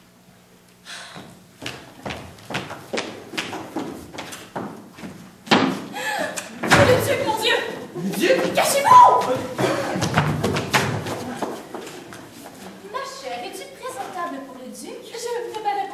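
An audience claps in rhythm.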